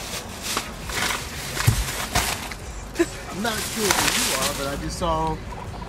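Plastic shopping bags rustle and crinkle up close.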